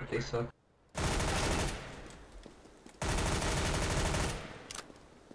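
A submachine gun fires rapid bursts.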